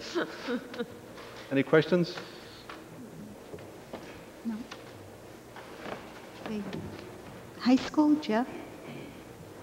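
A middle-aged man speaks into a microphone.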